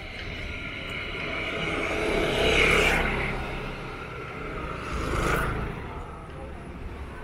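Motor scooters approach and pass close by, one after another.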